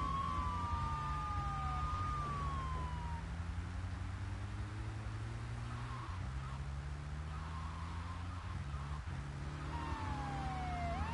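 Car tyres screech while skidding on pavement.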